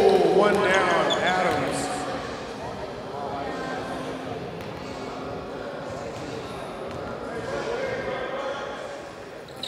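People in the stands and on court shout and chatter in a large echoing gym.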